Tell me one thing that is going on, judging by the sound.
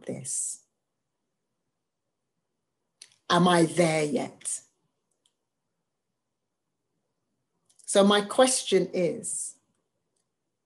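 A middle-aged woman speaks calmly over an online call, in short phrases with pauses.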